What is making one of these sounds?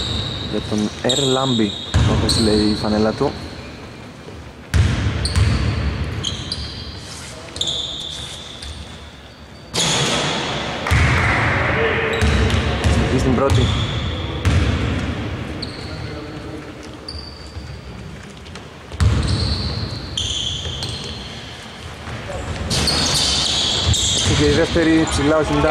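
Several men call out to each other across the echoing court.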